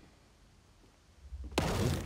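A pickaxe thuds against wood.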